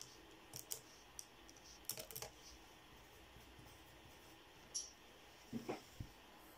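A pencil scratches and taps on paper.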